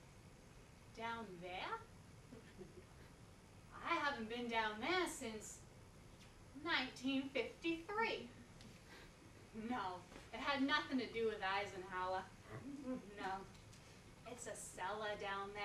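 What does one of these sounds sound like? A woman speaks expressively.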